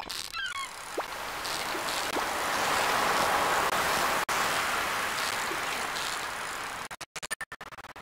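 A fishing reel whirs steadily as a line is wound in.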